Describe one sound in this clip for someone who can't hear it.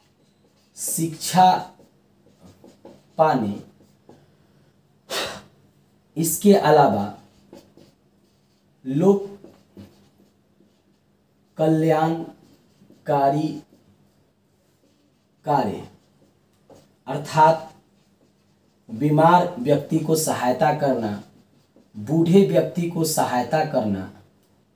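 A middle-aged man speaks calmly and clearly up close, in short phrases with pauses.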